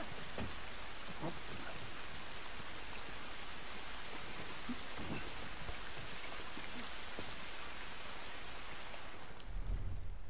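Footsteps shuffle softly over rough ground.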